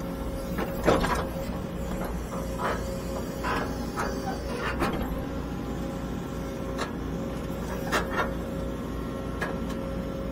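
Dirt and clods thud as an excavator bucket scrapes the ground.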